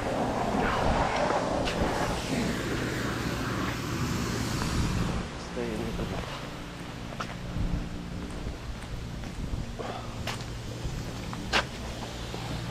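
Footsteps scuff on paving stones outdoors.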